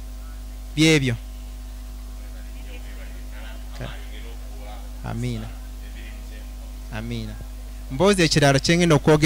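A man speaks with animation through a microphone and loudspeaker.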